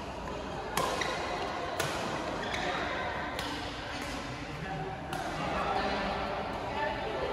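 Badminton rackets smack a shuttlecock back and forth, echoing in a large hall.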